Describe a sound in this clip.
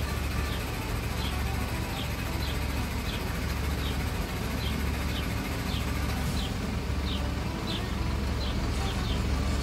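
A truck engine idles with a steady low rumble nearby.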